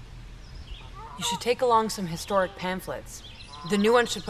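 A young woman speaks close by, softly and earnestly.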